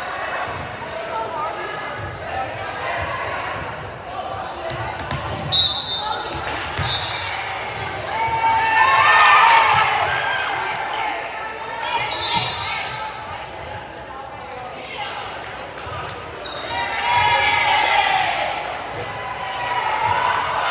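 Young women chatter and call out in a large echoing gym.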